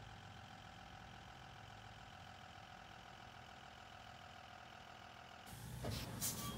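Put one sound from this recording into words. A bus engine idles with a steady low hum.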